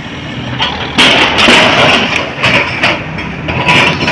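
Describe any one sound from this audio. Sheet metal scrapes and bangs.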